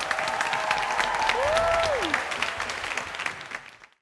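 Performers on stage clap their hands.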